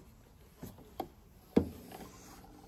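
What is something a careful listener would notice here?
A small metal lever clicks.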